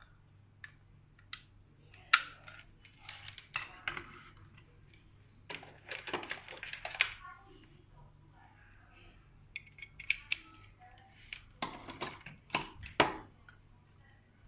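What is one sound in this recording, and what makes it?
Plastic parts click and rattle as hands handle a lamp and its cable.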